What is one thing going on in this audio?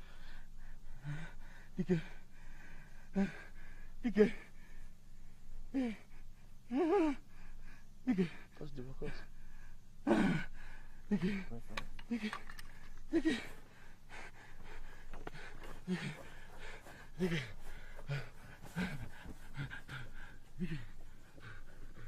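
A man pants and groans close by.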